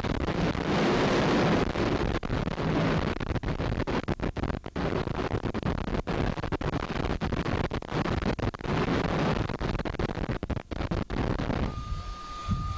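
A jet engine roars loudly nearby.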